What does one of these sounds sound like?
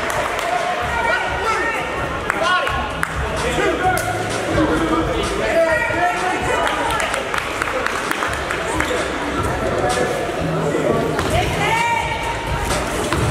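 Sneakers squeak sharply on a gym floor, echoing in a large hall.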